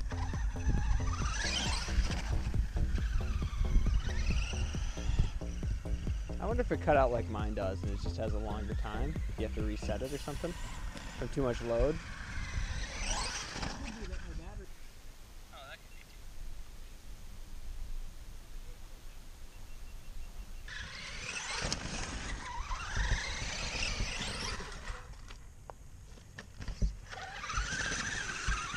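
A small electric motor whines, revving up and down as a toy truck races.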